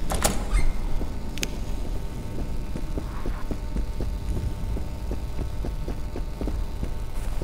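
Footsteps tap steadily on hard floor and stairs.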